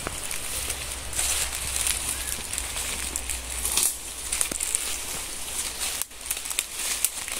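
A machete swishes through undergrowth.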